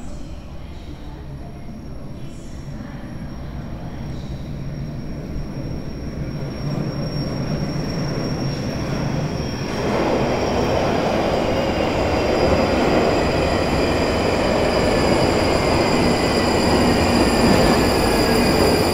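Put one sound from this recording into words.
An underground train approaches, rumbling louder and louder in an echoing tunnel.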